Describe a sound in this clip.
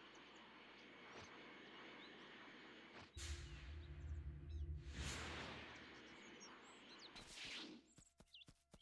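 Wind rushes steadily past a flying figure.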